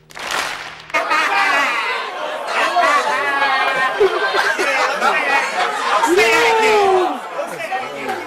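Men on stage shout and laugh with excitement.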